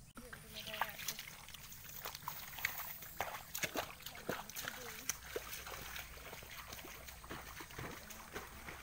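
Dry rice stalks rustle and crackle as people wade through them.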